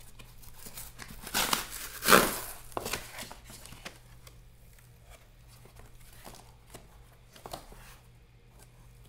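Cardboard rustles and scrapes under gloved hands.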